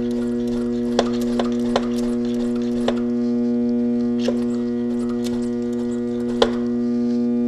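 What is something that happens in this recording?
A plastic cap clicks and knocks under a hand.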